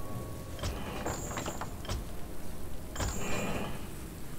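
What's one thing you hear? A menu button clicks.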